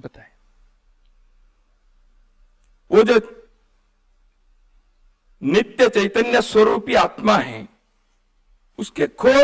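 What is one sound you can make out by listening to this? An elderly man speaks emphatically into a microphone, with long pauses.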